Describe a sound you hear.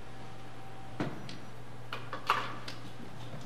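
A wooden bench bumps and knocks as a man sits down at a piano.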